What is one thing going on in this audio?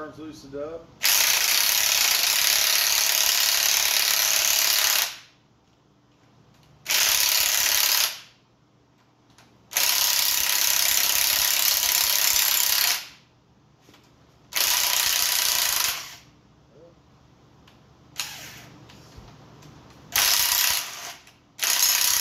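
A power tool whirs loudly in short bursts, close by.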